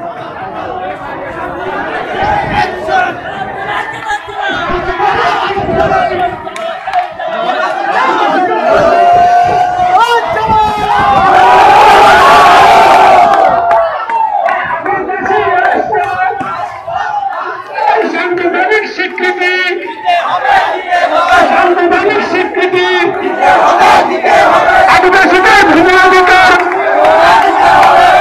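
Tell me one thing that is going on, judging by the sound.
A crowd of marchers chants and shouts loudly outdoors.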